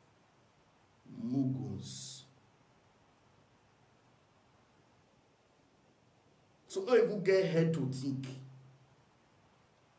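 A man speaks close by in short, calm phrases with pauses.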